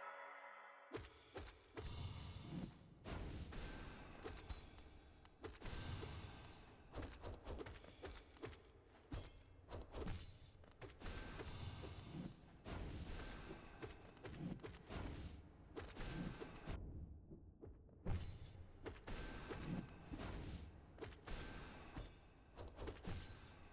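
Sharp sword slashes and heavy impacts clash repeatedly in a fight.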